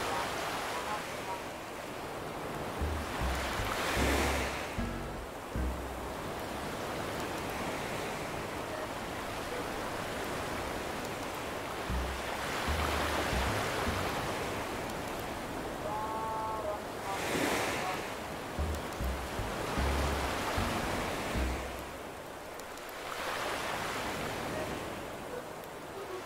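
Gentle waves wash onto a shore, rising and falling in slow swells.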